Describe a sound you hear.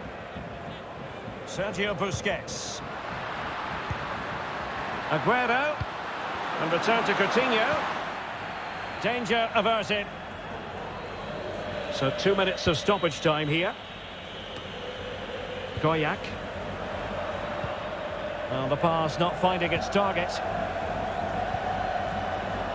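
A large stadium crowd cheers and murmurs steadily, swelling at times.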